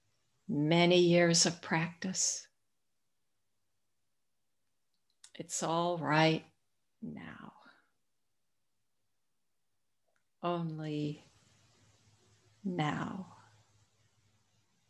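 An older woman speaks calmly in short phrases over an online call, with pauses between them.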